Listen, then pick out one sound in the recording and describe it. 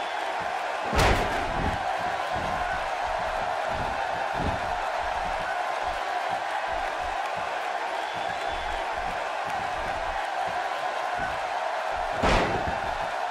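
A heavy thud of a body slamming onto a wrestling mat rings out.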